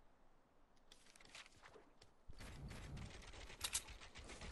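Wooden walls are put up with quick hollow knocks.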